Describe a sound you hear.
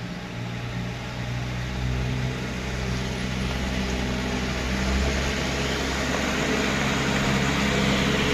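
Tyres crunch over a rough dirt road.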